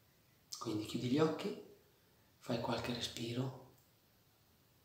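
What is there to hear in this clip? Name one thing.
A middle-aged man speaks calmly and close to the microphone, in two short phrases.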